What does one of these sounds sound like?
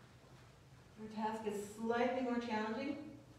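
A boy speaks loudly into a microphone in an echoing hall.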